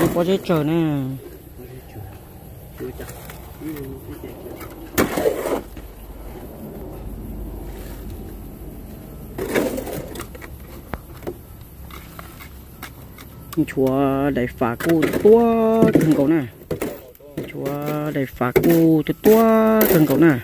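A trowel taps and pats wet concrete into a mould.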